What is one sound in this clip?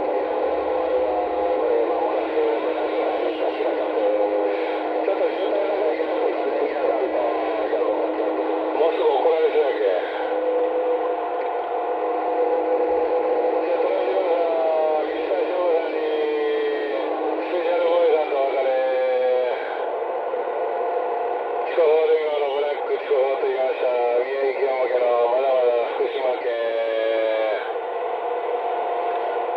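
Radio static hisses and warbles from a receiver.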